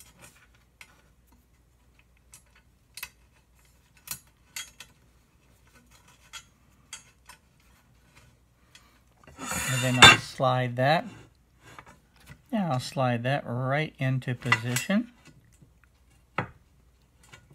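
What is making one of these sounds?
Small metal parts click and scrape against each other.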